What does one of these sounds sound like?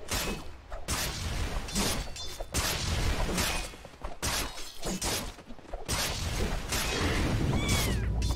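Blades clash and spells burst in a fast fight.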